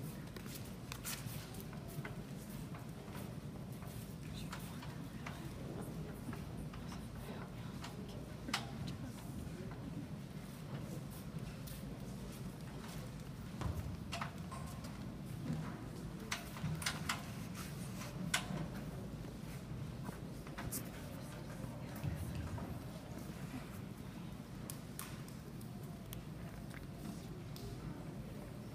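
A large audience murmurs and chatters in an echoing hall.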